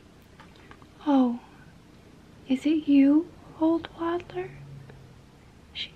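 A young woman speaks in a soft, sing-song voice close by.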